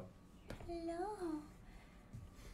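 A small dog whimpers.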